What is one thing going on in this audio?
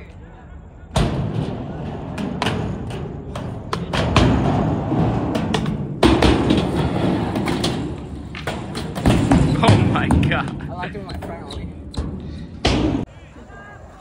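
Skateboard wheels roll and rumble over concrete ramps.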